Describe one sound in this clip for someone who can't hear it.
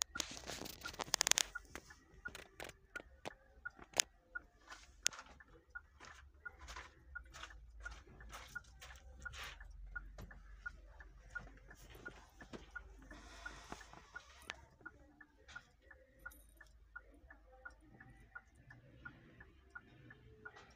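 A handheld electronic device beeps rapidly and steadily.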